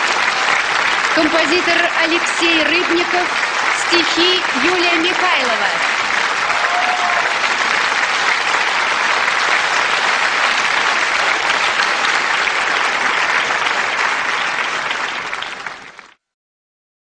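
A large crowd applauds loudly in an echoing hall.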